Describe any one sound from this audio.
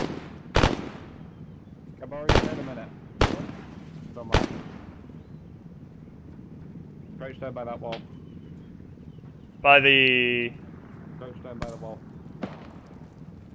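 Rifle shots crack and echo across open ground.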